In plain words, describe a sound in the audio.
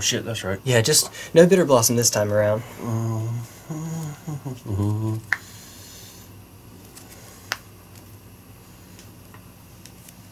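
Playing cards are shuffled by hand, with soft flicks and taps.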